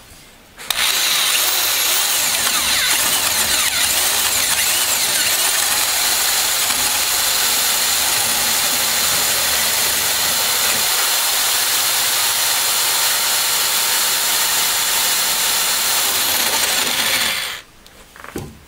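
A power drill whirs loudly and steadily as it bores into wood.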